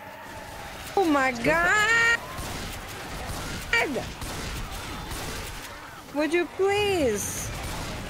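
A young man shrieks and exclaims loudly into a microphone.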